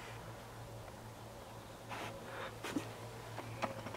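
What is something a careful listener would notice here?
A dog sniffs the air in short, quick breaths.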